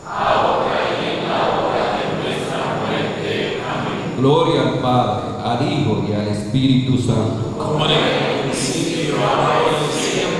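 A congregation sings together in a reverberant hall.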